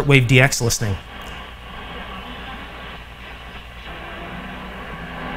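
Static hisses from an old radio as it is tuned.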